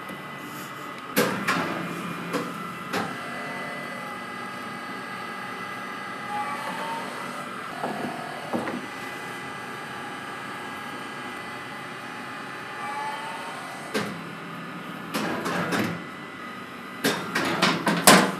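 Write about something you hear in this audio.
Metal trays clank and knock.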